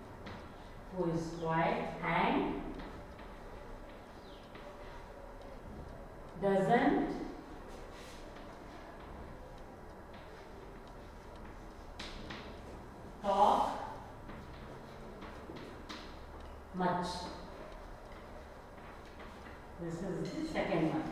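A woman speaks slowly and clearly, as if reading out.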